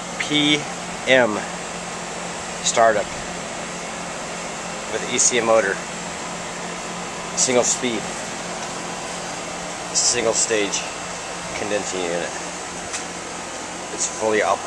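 An air conditioning unit hums steadily outdoors.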